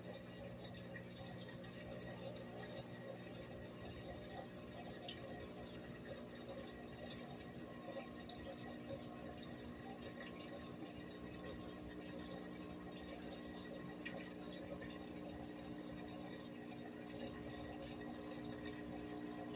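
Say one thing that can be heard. A top-load washing machine runs a rinse with a steady motor hum.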